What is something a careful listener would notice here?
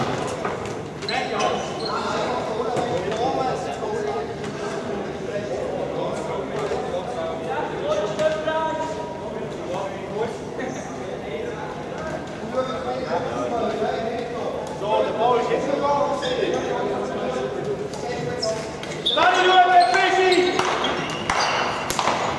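Floorball sticks clack against the ball and each other.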